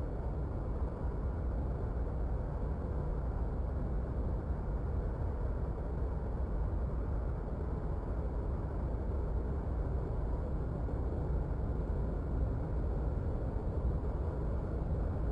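A jet engine rumbles low and steady.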